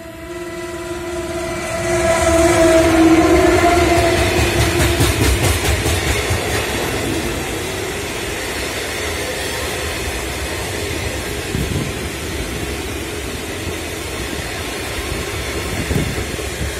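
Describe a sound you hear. A long freight train rumbles and clatters past on the rails close by.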